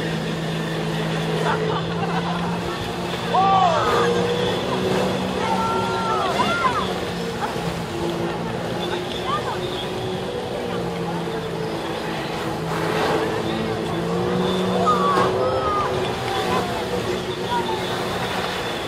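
A personal watercraft engine drones, revving under load.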